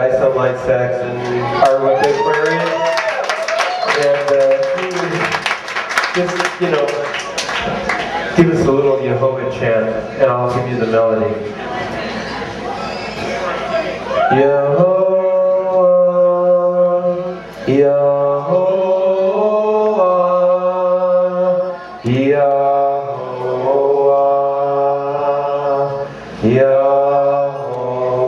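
An electric guitar plays loudly through an amplifier, with long ringing chords.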